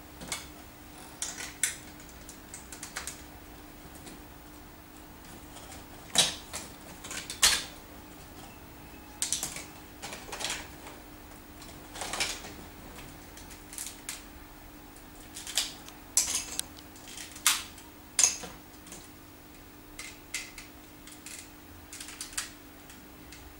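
Plastic building pieces click and clatter as a child snaps them together.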